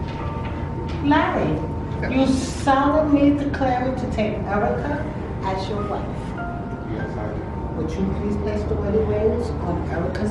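An older woman speaks with animation nearby.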